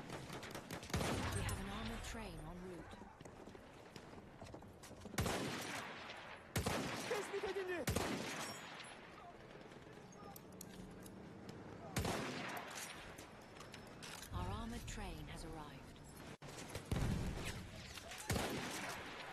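Rifle shots crack loudly, one at a time.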